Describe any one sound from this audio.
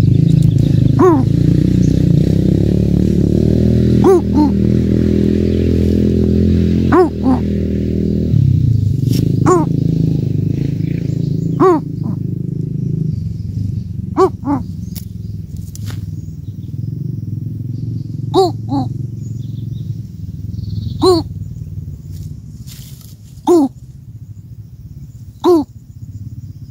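A bird gives short, repeated chirping calls close by.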